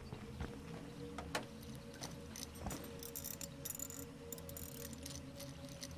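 Metal parts clank and rattle under a car's raised hood.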